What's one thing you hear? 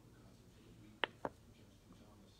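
Long fingernails tap and click against a small glass bottle.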